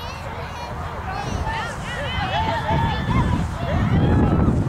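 Adults and children shout and cheer nearby.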